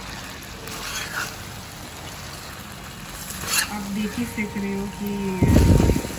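A metal spatula scrapes and stirs food in a metal pan.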